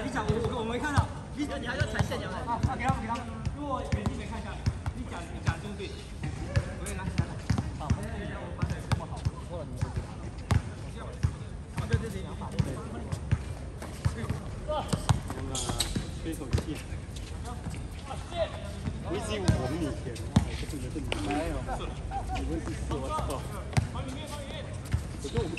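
Young men call out and talk across an open outdoor court.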